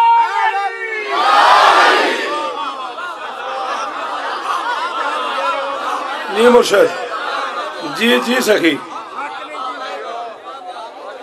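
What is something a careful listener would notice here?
A crowd of men chants together in reply.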